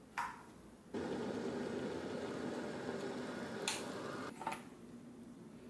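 An electric kettle heats water with a steady rushing hiss.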